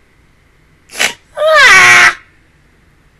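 A young woman laughs loudly, close to a microphone.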